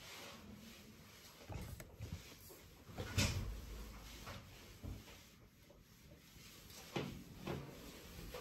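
Clothing rustles close by as a person moves about.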